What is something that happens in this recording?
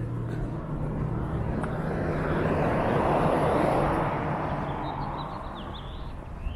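A car passes by on a nearby street, swelling and fading.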